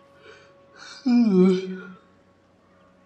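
A young man shouts excitedly.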